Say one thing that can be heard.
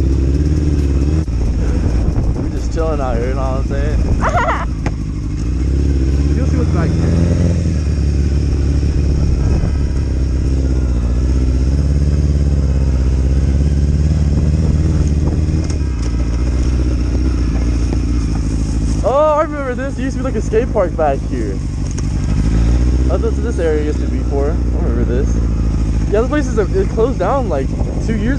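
A motorcycle engine rumbles steadily close by, rising and falling as the bike rides slowly.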